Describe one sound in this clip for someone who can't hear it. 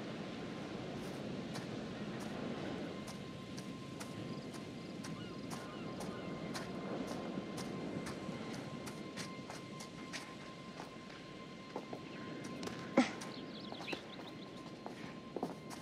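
Footsteps crunch on dry ground and grass at a steady pace.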